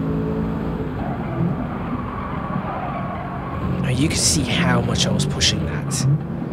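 A racing car engine roars steadily at high revs.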